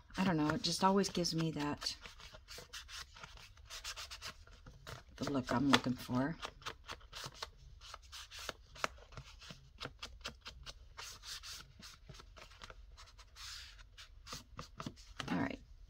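A sponge rubs along the edge of a sheet of paper with soft scratchy strokes.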